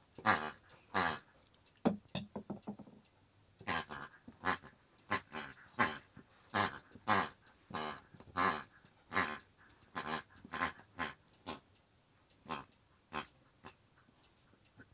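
A dog chews and gnaws loudly on a squeaky toy, close by.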